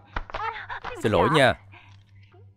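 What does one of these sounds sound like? A young woman squeals and laughs loudly.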